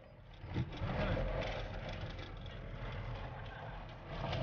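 Tyres roll and crunch over a rough gravel road.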